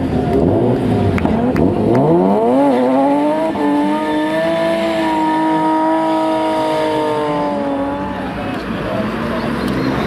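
Tyres squeal as a car drifts.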